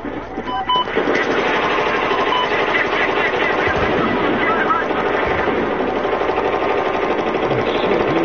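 Rapid gunfire crackles amid loud battle noise.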